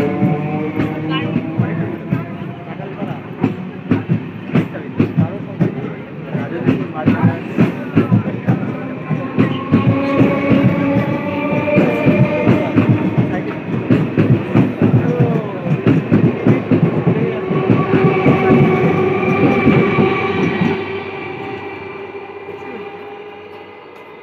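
A train rolls past close by, its wheels clattering rhythmically over the rail joints, then fading away.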